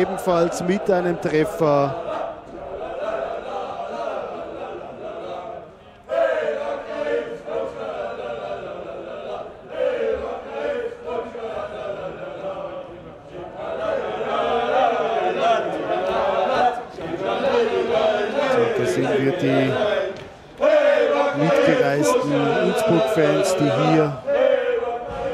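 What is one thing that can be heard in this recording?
A crowd of fans chants and sings loudly outdoors.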